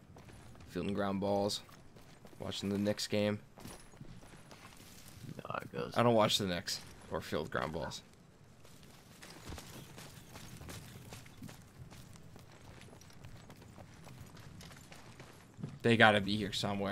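Footsteps run across grass and sand.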